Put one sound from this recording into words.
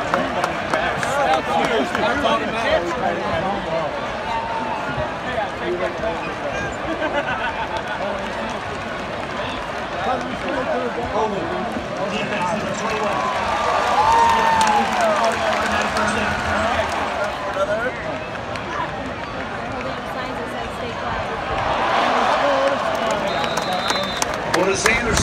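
A large crowd chatters and shouts all around, heard from the stands.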